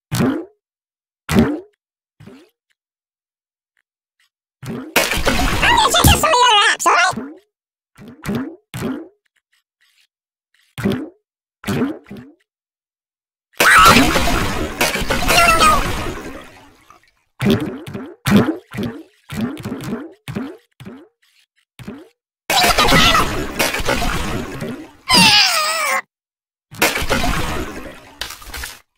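Small objects smack and pop against a soft figure again and again.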